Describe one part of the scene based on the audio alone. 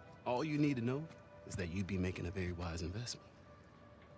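A young man speaks persuasively, close by.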